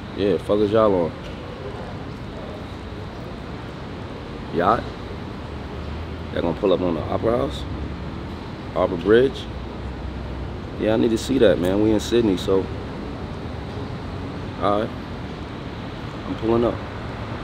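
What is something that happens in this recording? A man talks on a phone in short bursts, close up.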